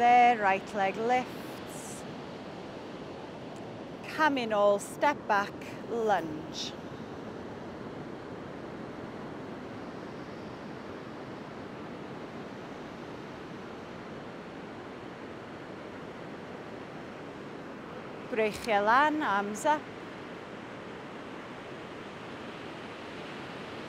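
Waves wash softly onto a beach in the distance.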